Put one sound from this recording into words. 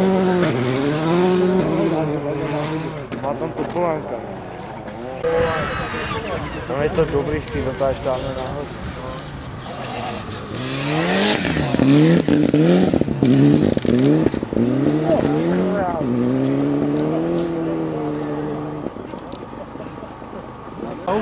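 A rally car engine roars and revs hard as the car races past.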